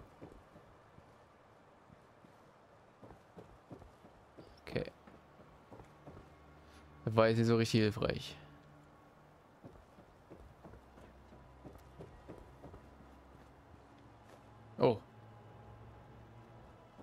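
Footsteps thud softly on wooden planks.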